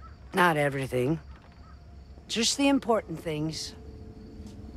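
An elderly woman speaks slowly and menacingly, close by.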